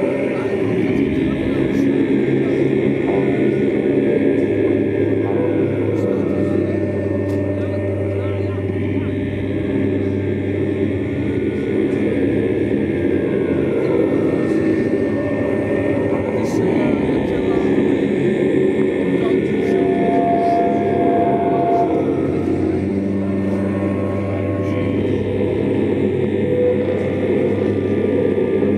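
A distorted electric guitar plays loud, droning chords through an amplifier.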